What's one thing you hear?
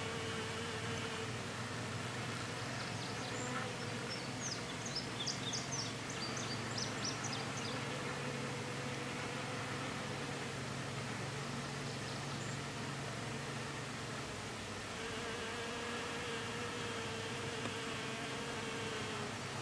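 A bee buzzes close by.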